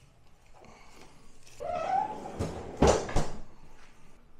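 A freezer drawer slides shut with a thud.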